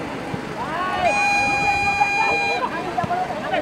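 A referee blows a long whistle.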